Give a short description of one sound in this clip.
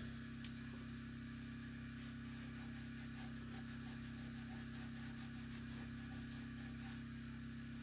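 A brush scrapes inside a metal stove.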